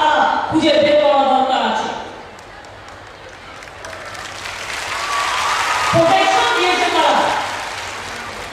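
A woman speaks forcefully through a loudspeaker, her voice echoing outdoors.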